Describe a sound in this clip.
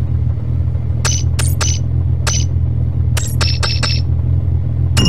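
Short electronic menu blips sound one after another.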